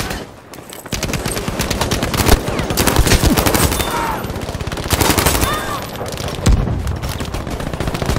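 A rifle fires rapid, loud shots close by.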